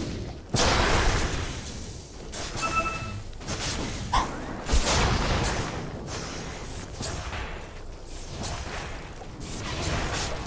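Spells and weapon blows crash and whoosh in a game fight.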